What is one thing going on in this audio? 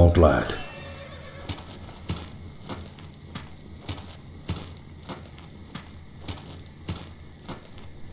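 Footsteps in armour thud softly on grass.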